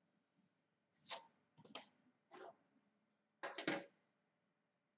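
Paper rustles and shuffles close by.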